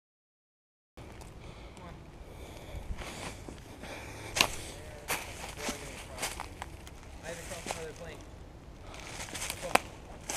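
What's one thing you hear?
Footsteps crunch and rustle through dry leaves.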